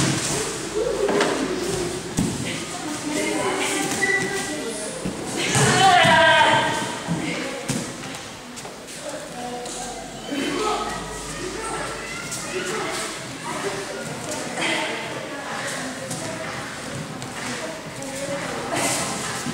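A man speaks calmly nearby in an echoing room.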